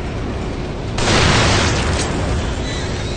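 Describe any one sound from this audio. An explosion booms and rumbles.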